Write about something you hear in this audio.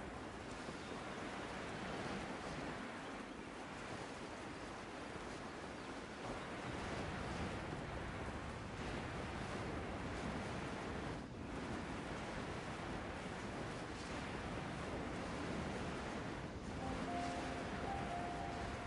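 Wind rushes steadily past a figure gliding through the air.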